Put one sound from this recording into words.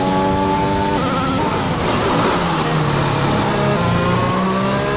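A racing car engine drops in pitch as the car slows down.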